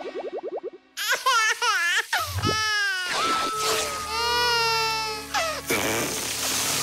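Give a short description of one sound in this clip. A cartoon character wails loudly in a high, sobbing voice.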